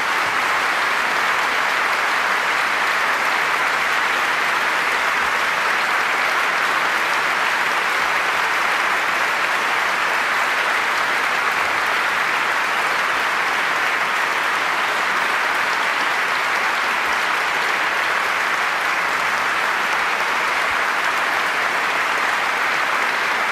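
A large audience applauds steadily in a large hall.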